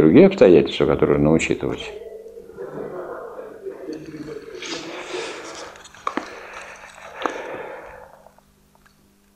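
An elderly man speaks calmly in an echoing room.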